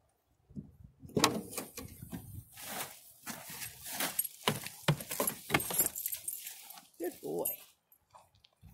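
A goat shuffles about on straw inside a car.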